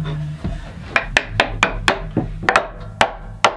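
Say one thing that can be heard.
A mallet taps a wooden strip into a groove with sharp knocks.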